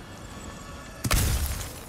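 A heavy body thuds onto rocky ground.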